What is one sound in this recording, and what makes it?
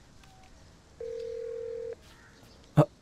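A phone gives a single steady tone close by.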